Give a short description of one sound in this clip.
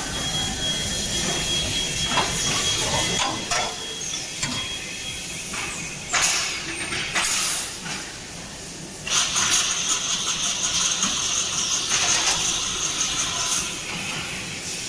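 Machinery clanks and hums in a large echoing hall.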